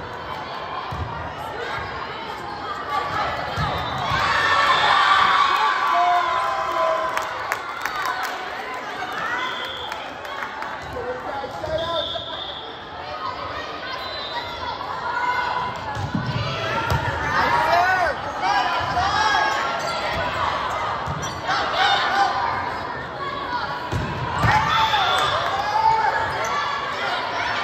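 Spectators in the stands talk and cheer.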